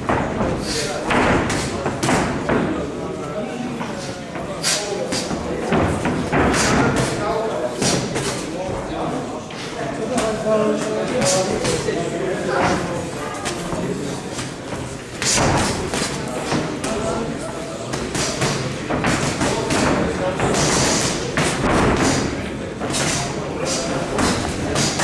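Boxing gloves thud against bodies and gloves in quick punches.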